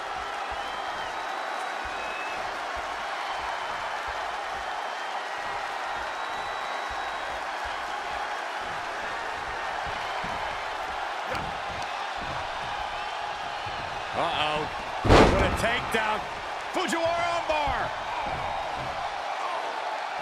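A large crowd murmurs and cheers steadily in a big arena.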